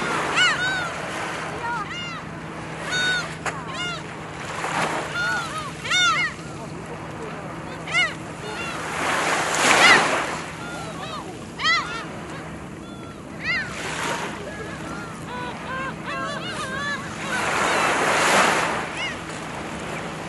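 Seagulls call out in sharp cries.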